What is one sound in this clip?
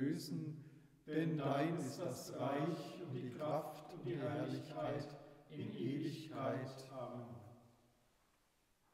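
An elderly man sings or speaks in a solemn voice, with echo.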